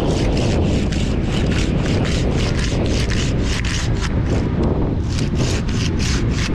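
Strong wind buffets outdoors, rumbling steadily.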